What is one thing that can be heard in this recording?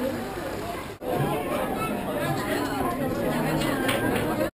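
Children chatter in an echoing hall.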